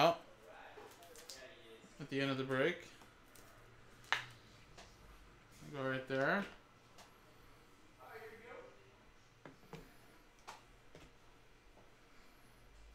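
Cards click and tap as they are handled.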